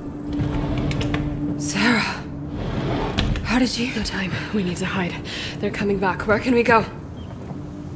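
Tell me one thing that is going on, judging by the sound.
A young woman speaks urgently.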